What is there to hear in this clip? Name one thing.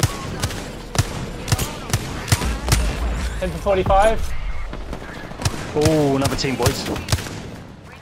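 Gunshots crack out one after another at a steady pace.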